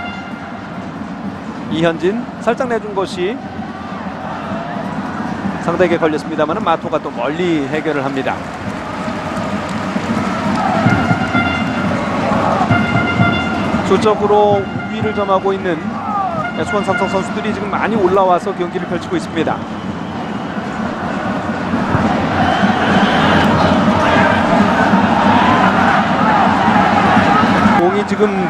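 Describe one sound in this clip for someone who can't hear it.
A large stadium crowd roars and chants steadily, swelling louder toward the end.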